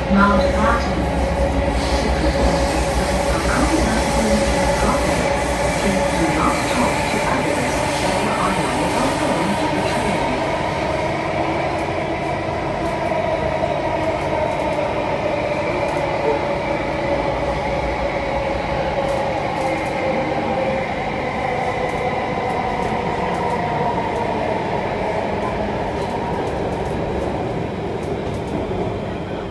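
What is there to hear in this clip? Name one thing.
A subway train rumbles and whines steadily as it travels.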